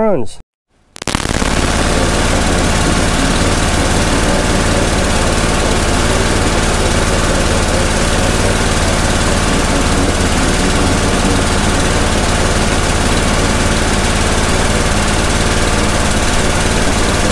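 A pressure washer engine runs with a loud, steady drone.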